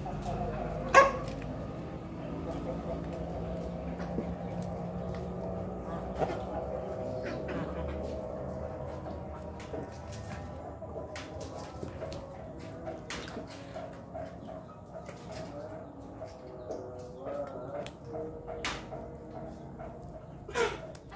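A rooster's claws tap and scratch on a concrete floor.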